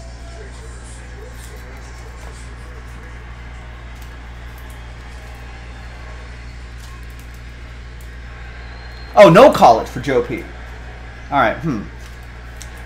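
Cards rustle and flick in a man's hands.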